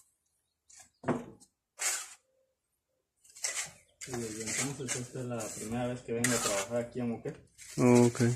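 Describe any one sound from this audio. A metal trowel scrapes plaster off a ceiling in short, rough bursts.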